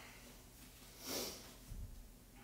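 A young woman breathes out sharply.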